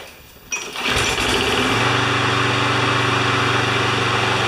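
A lawn mower engine runs with a steady, loud drone.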